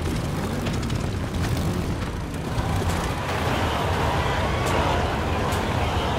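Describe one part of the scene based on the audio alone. A vehicle's engine rumbles steadily as it drives over rough ground.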